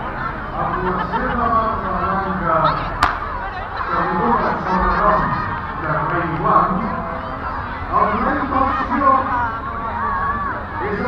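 Children shout and cheer.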